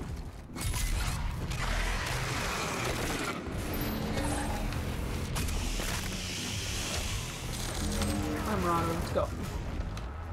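Demons growl and screech.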